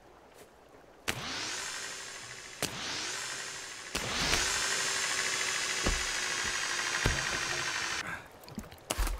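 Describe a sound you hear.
A pulley whirs and whines as it runs along a taut cable.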